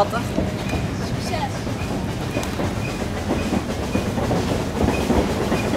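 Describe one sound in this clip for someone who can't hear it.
Teenage boys talk and laugh together close by, outdoors.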